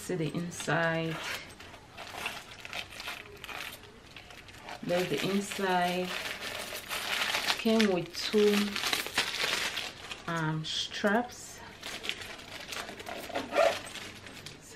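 A leather handbag rustles and creaks in a woman's hands.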